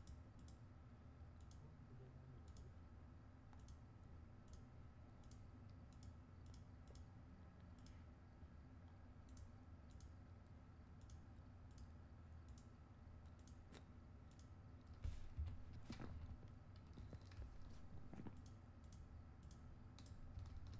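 Short soft menu clicks tick repeatedly.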